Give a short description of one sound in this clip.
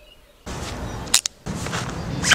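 A helmet strap buckle clicks shut.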